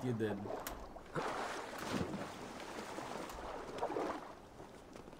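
Water splashes and laps as someone swims.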